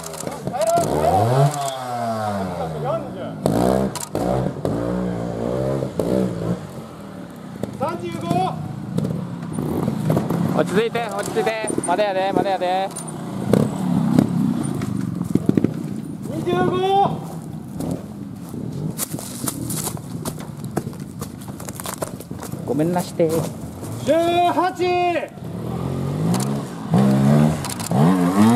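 A motorcycle engine revs up and down sharply close by.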